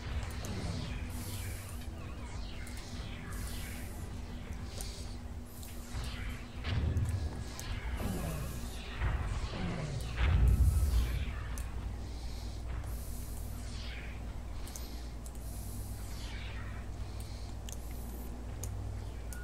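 Laser blasts zap repeatedly in a space battle game.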